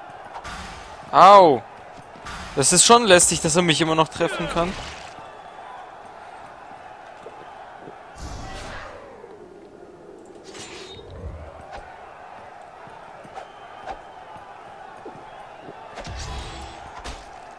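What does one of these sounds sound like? A sword swings and clangs in a fight.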